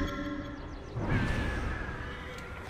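A figure lands hard with a heavy thud.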